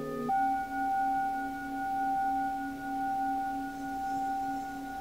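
A singing bowl is struck and rings out clearly.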